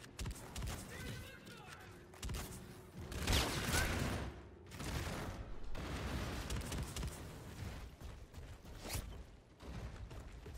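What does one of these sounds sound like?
Rapid gunfire bursts in quick shots.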